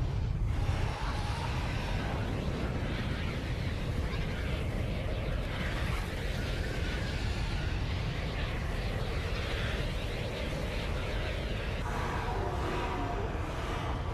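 Birds flap and screech in a swarm.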